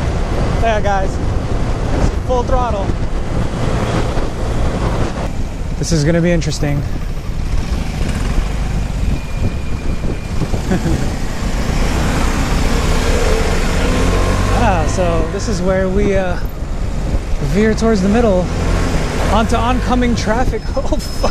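A scooter engine hums steadily at close range.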